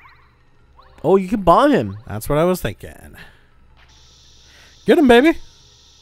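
Playful video game sound effects chirp and bounce in short bursts.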